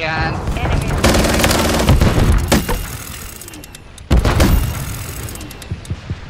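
A minigun fires rapid bursts.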